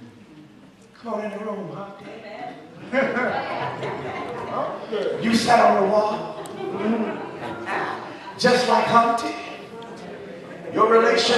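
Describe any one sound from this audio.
A man speaks with animation through a microphone and loudspeakers in an echoing hall.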